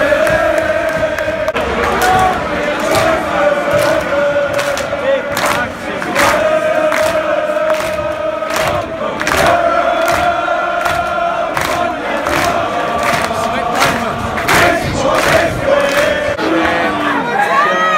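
A crowd of young men chants in unison close by.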